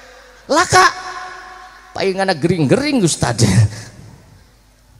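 A man sings out through a microphone and loudspeakers, echoing in a large open space.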